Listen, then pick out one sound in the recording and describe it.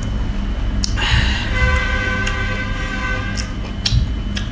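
A young woman speaks briefly, close by.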